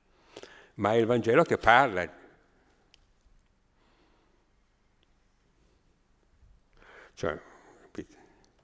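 An elderly man speaks into a microphone with animation, pausing between phrases.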